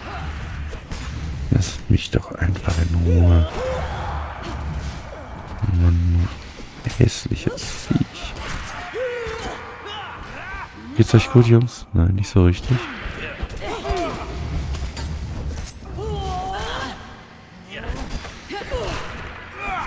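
Sword blows land on a creature with sharp, heavy impacts.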